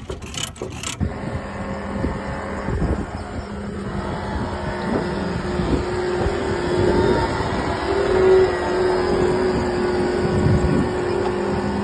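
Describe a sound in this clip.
A heavy machine's engine idles with a steady hum.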